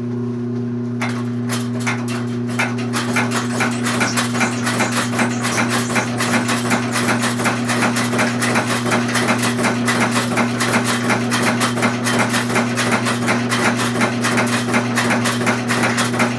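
Old nail-making machines clatter rapidly as they stamp out nails.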